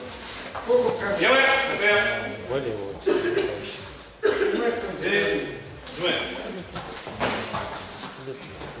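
A man shouts loudly in a large echoing hall.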